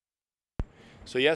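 A man starts speaking into microphones outdoors.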